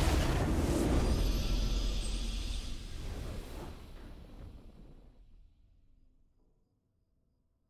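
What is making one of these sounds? A game's victory fanfare swells and fades away.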